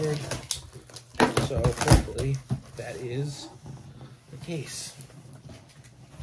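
Cardboard scrapes and rustles.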